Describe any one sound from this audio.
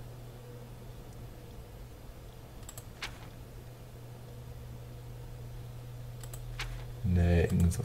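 A book's paper pages turn with a soft rustle.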